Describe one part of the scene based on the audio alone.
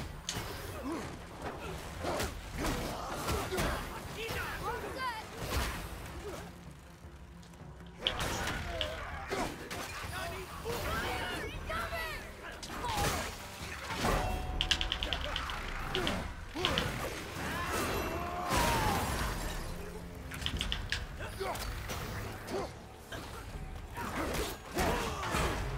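Fiery arrows whoosh and burst.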